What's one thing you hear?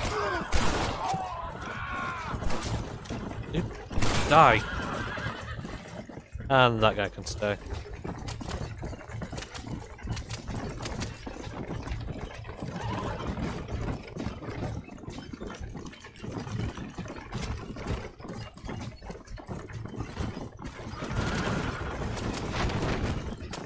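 A wooden wagon rattles and creaks as it rolls.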